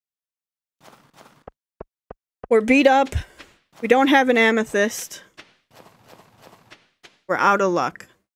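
Footsteps tap quickly on snow.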